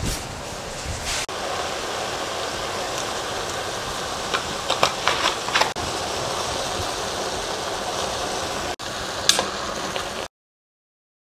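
Mushrooms sizzle in a frying pan.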